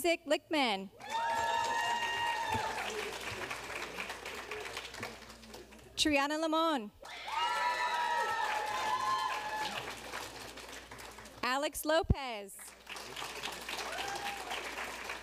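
An audience cheers and whoops.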